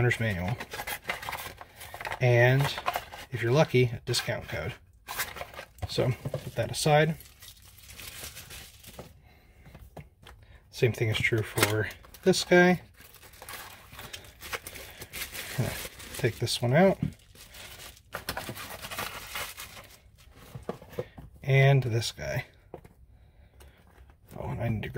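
Paper packaging rustles as hands open it.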